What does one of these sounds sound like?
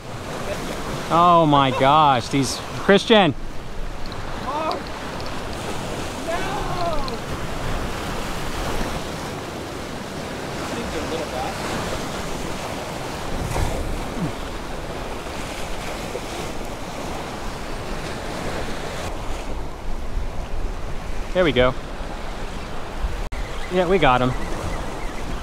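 Waves splash against rocks close by.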